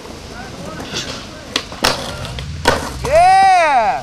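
A skateboard clatters and slaps against the ground.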